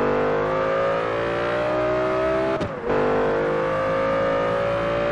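A car engine roars at high revs, rising steadily in pitch.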